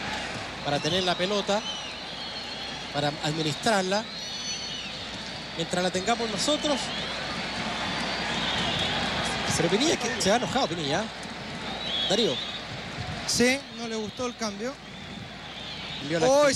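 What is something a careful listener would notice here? A large stadium crowd roars and whistles steadily.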